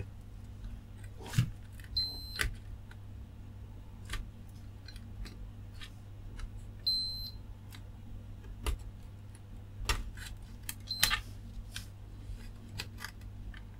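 Small plastic latches click and snap.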